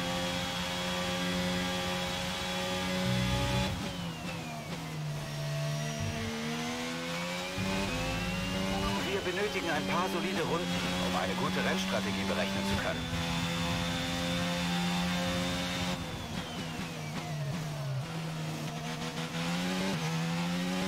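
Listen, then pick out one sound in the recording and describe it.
A racing car engine whines loudly, dropping in pitch when slowing and revving up again through gear changes.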